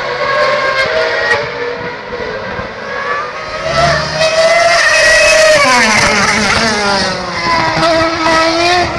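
A racing car engine screams at high revs as the car passes close by.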